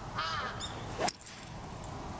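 A golf club strikes a ball with a sharp crack, outdoors.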